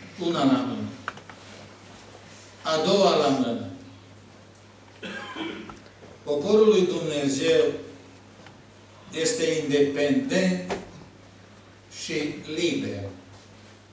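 An elderly man speaks calmly into a microphone, in short phrases with pauses, in a slightly echoing room.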